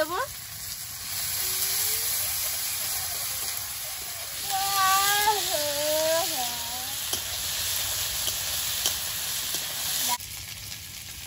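Food sizzles and fries in a hot wok.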